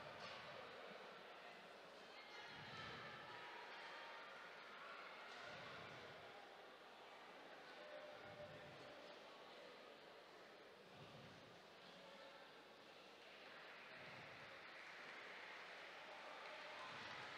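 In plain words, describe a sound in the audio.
A crowd cheers and applauds in a large echoing arena.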